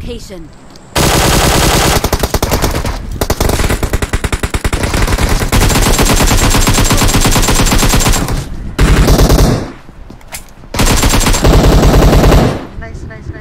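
Rapid gunfire rattles loudly and close.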